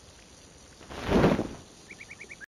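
A short whooshing chime sounds as something pops into place.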